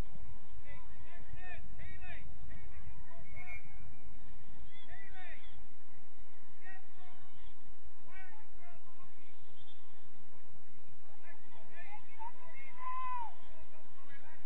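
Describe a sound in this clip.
Young players shout to each other across an open field in the distance.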